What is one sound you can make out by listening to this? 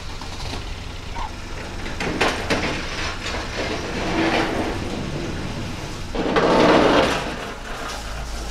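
A pallet truck rattles over a lorry's tail lift and onto the road.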